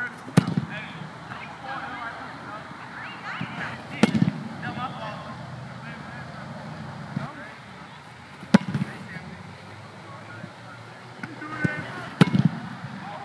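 A foot kicks a soccer ball with a sharp thump, again and again, outdoors.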